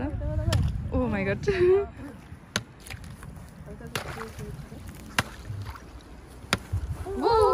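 A stick knocks against ice at the water's edge.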